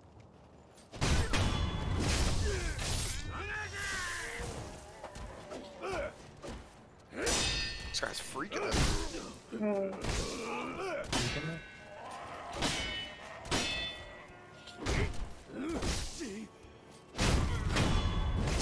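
Swords clash and ring sharply in a fight.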